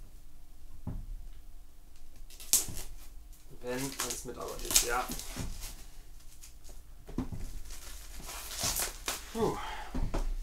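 Hands tap and scrape against a cardboard box.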